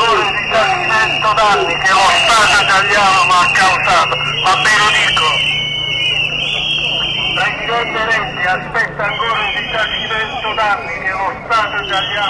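A crowd of men and women chatters loudly outdoors.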